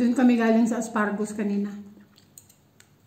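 A middle-aged woman speaks close to the microphone.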